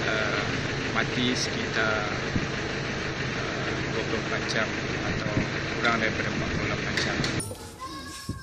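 A man speaks calmly and firmly into microphones close by.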